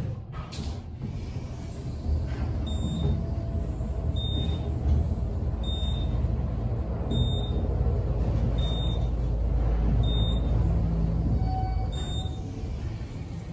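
An elevator hums and rumbles steadily as it descends.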